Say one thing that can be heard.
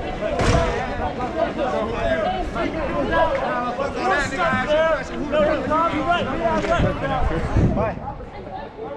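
A crowd of men and women talk and shout nearby outdoors.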